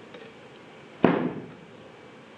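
A plastic ruler knocks down onto a drawing board.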